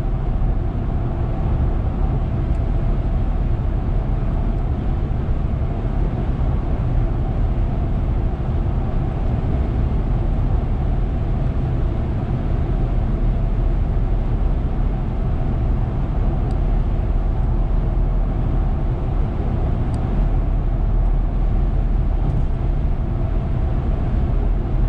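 Tyres roar steadily on the road.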